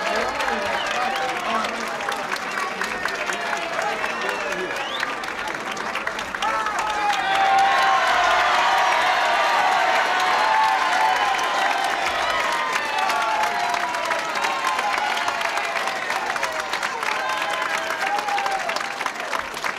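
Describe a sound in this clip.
A crowd claps steadily.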